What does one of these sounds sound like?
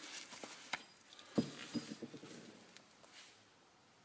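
A metal wheel hub knocks down onto a concrete floor.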